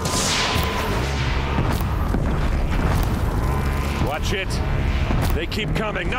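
Laser beams fire with sharp, crackling zaps.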